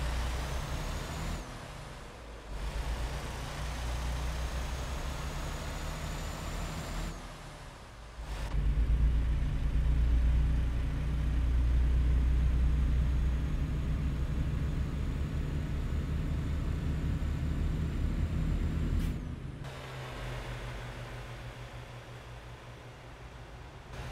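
A truck engine rumbles steadily, louder at times, as it drives.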